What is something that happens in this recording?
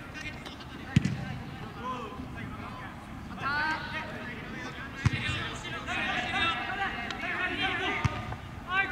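A football is kicked with a hard thud.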